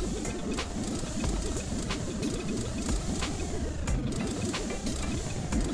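Bouncy electronic game music plays with a steady beat.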